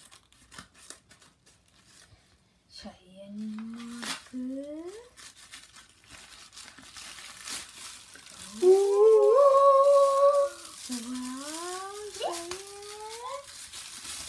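Paper and plastic wrapping rustle and crinkle as a package is opened.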